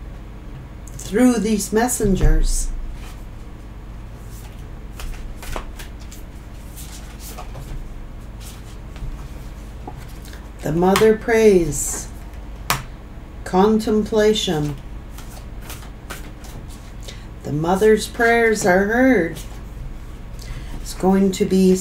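A woman speaks calmly and closely to a microphone, in bursts with pauses.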